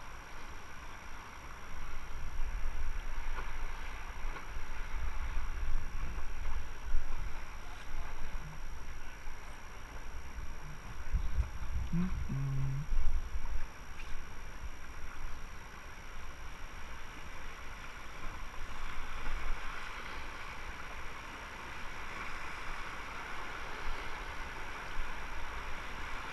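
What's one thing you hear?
River rapids rush and splash steadily outdoors.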